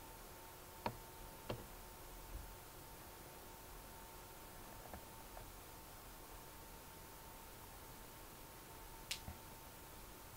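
A short chess move click sounds a few times.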